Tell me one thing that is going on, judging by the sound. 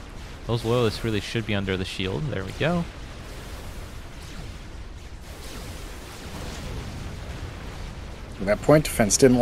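Weapons fire and small explosions crackle in a battle.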